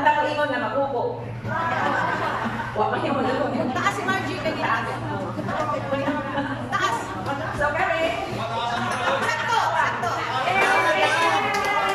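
An older woman sings through a microphone and loudspeakers.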